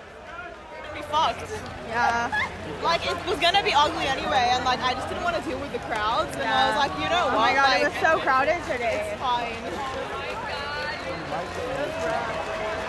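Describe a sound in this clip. Many young people chatter and shout nearby in a crowd.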